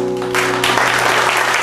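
A band of guitars rings out a final chord.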